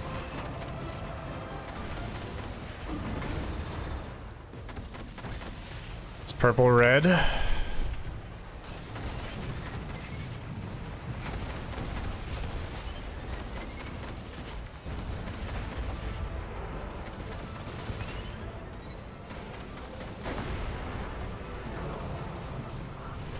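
Energy weapons fire and crackle in bursts.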